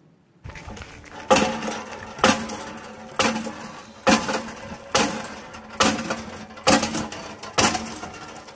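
Water splashes from a pump spout.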